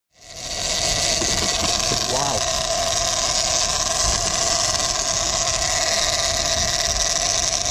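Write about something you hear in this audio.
A fishing reel's drag whines steadily.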